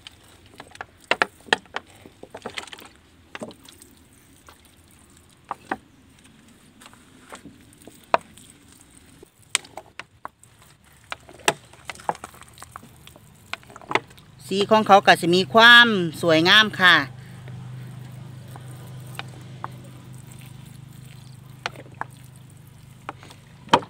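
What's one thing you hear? Water trickles from a bottle and splashes onto leaves and soil.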